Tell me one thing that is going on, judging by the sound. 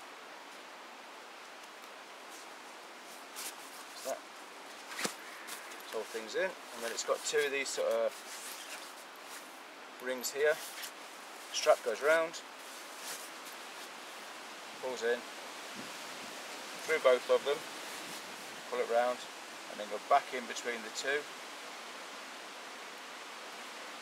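A canvas bag rustles as it is rolled and tied.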